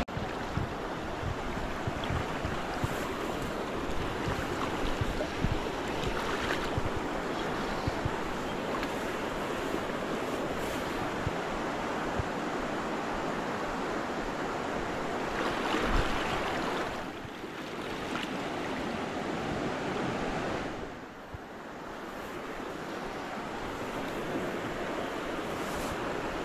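A river rushes and splashes loudly close by.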